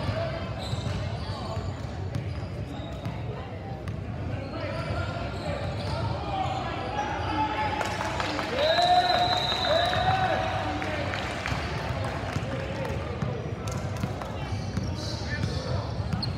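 A crowd of spectators chatters and shouts in a large echoing gym.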